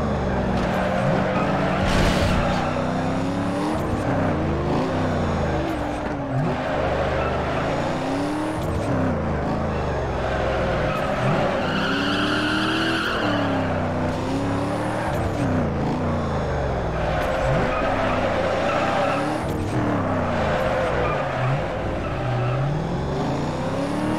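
Tyres screech as a car drifts around corners.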